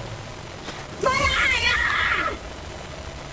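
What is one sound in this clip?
A monster lets out a loud, snarling roar.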